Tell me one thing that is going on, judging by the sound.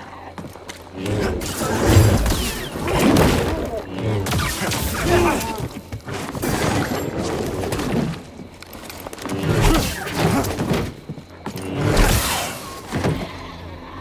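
A large creature roars and growls.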